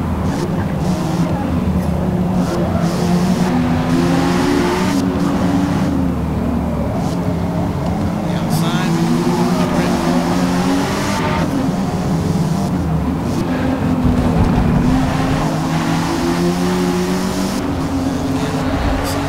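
A car engine roars and revs up and down as the car races.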